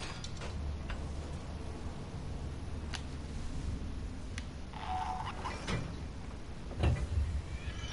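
A metal lever clanks as it is pulled loose.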